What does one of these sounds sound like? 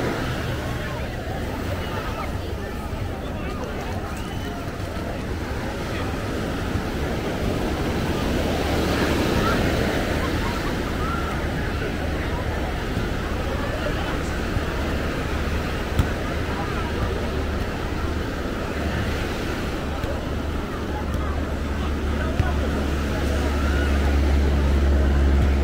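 A crowd of beachgoers chatters in the distance.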